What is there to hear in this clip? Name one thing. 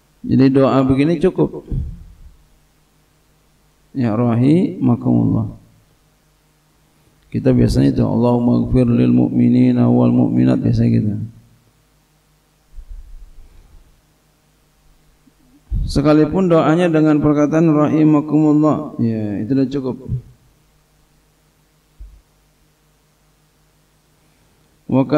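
A middle-aged man speaks slowly and solemnly into a microphone, with pauses, in a reverberant hall.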